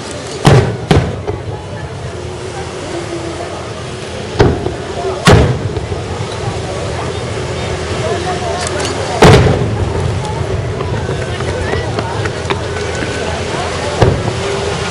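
Fireworks burst with loud booming bangs that echo off.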